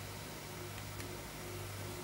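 A fingertip taps lightly on a touchscreen.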